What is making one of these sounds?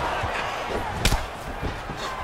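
A kick lands with a sharp thud.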